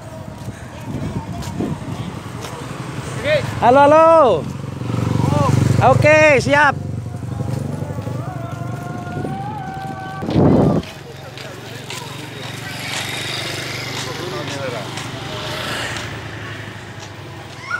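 Motorcycle engines hum as they pass close by.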